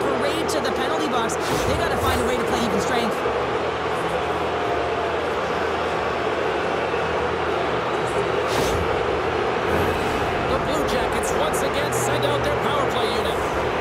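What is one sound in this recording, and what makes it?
A large arena crowd roars and cheers steadily.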